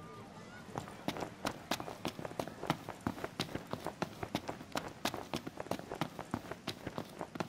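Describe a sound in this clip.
Footsteps run quickly on hard pavement.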